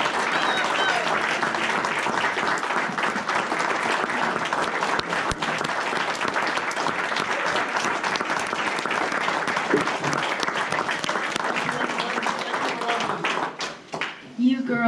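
A crowd of people applauds and cheers.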